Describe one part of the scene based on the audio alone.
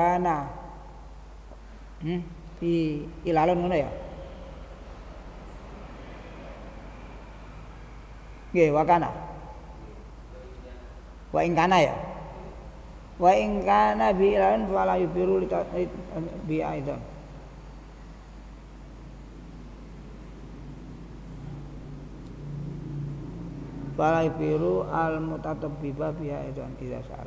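An elderly man speaks slowly into a microphone, in bursts with long pauses.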